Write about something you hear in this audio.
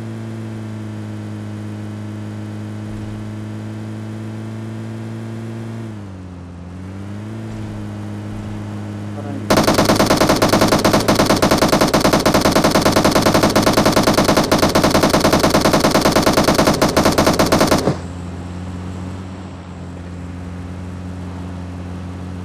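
A car engine hums steadily as a vehicle drives over rough ground.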